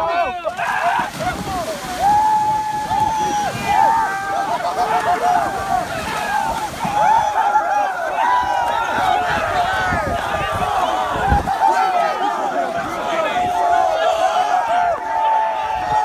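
Water splashes as young men run and dive into a lake.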